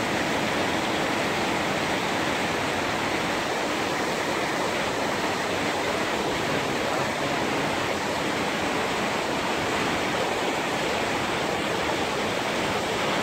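Heavy rain drums on metal roofs.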